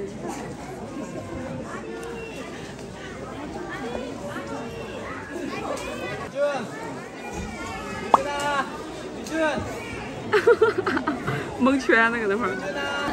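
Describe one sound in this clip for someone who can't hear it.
Young children chatter and call out.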